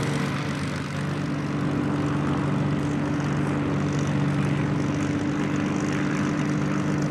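A second propeller plane's engine drones nearby, growing louder as the plane approaches.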